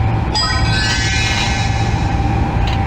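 A game chimes a short bonus sound.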